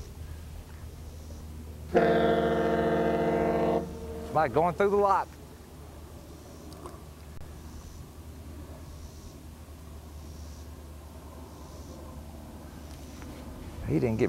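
Small waves ripple gently on open water.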